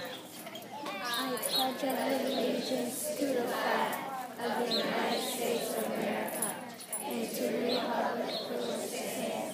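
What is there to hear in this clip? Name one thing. A crowd of children and adults recites together in unison.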